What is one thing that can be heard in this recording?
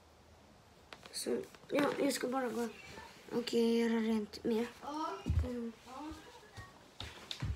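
A young boy talks loudly and with animation close by.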